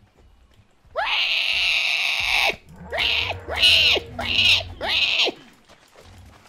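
A large creature lets out loud, wailing honks that rise and fall.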